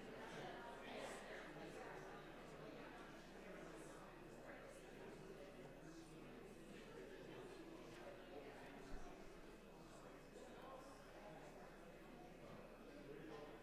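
Many adults murmur and chat softly in a large echoing hall.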